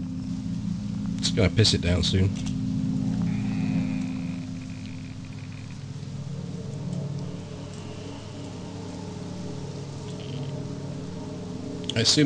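Leafy branches rustle as someone pushes through a bush.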